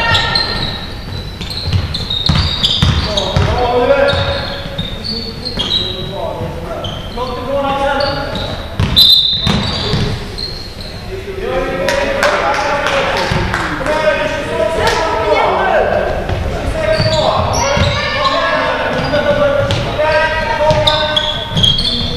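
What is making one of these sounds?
A basketball bounces on the floor with dull thuds.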